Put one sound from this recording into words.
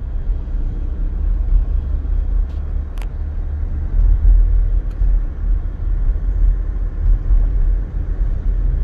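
Traffic passes along the road.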